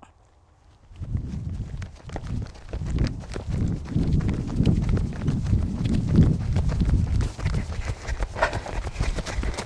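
Wind rumbles and buffets the microphone outdoors.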